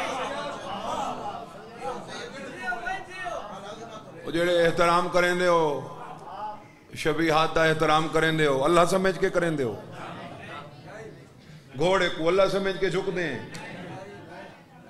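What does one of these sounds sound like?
A man speaks passionately into a microphone, his voice rising into drawn-out chanted phrases.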